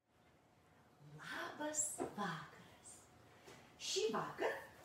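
A woman speaks warmly and clearly into a close microphone.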